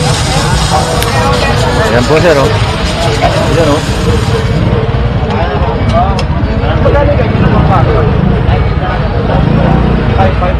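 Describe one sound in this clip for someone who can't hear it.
A pressure washer motor hums steadily close by.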